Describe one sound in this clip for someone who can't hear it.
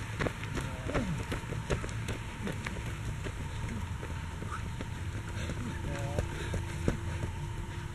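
Running footsteps slap on an asphalt road close by.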